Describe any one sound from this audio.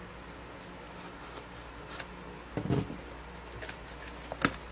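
A cardboard box is handled and rustles.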